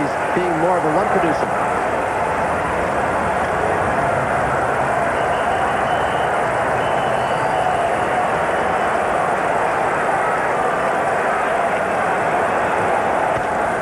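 A large stadium crowd roars and cheers, echoing under a dome.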